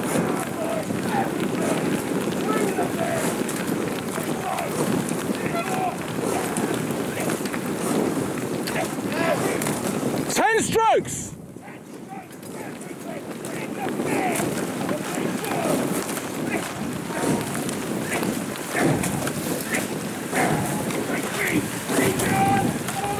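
Oar blades of an eight-oared rowing boat splash rhythmically into river water.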